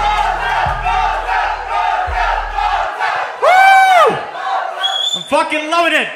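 A man raps energetically into a microphone, heard loud through loudspeakers.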